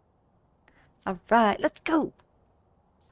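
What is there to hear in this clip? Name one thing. A young woman speaks briefly and with animation, close to a microphone.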